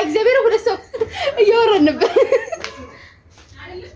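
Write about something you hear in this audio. A young woman laughs softly.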